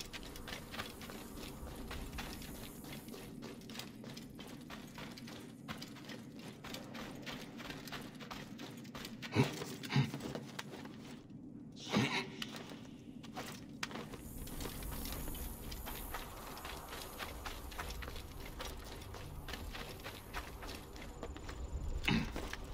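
Footsteps run quickly over sandy ground.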